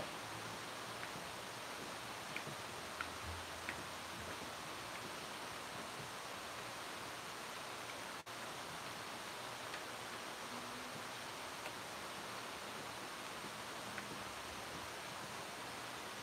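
A spoon taps and scrapes against a plastic bucket while stirring.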